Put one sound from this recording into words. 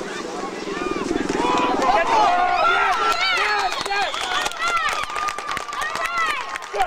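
Young men call out and cheer loudly.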